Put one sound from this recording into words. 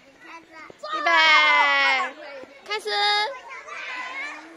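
A young child squeals loudly nearby.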